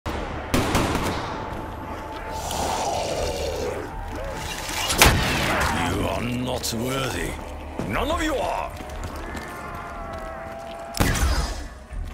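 Gunshots blast in sharp bursts.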